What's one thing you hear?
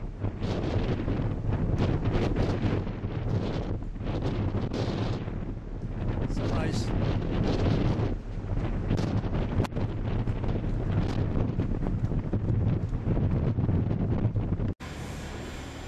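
Strong wind buffets and roars loudly outdoors.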